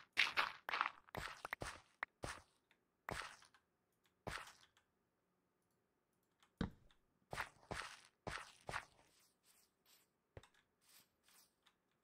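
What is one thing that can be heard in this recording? Footsteps thud on grass and dirt.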